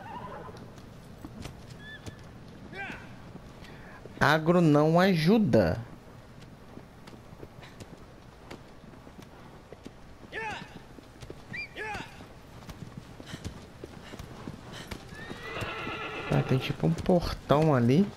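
A horse gallops with quick, rhythmic hoofbeats on grass.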